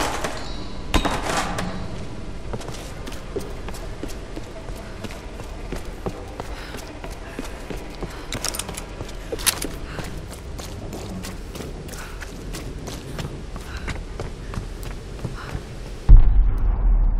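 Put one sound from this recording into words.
Footsteps crunch quickly over wood and dirt.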